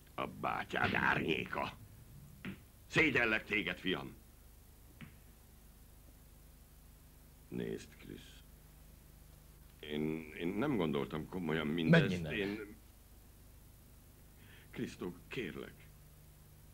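An elderly man speaks in a low, serious voice nearby.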